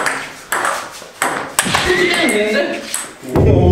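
A ping pong ball clicks against paddles and the table.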